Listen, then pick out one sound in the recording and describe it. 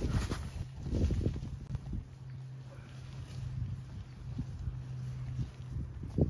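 Tent fabric rustles and flaps.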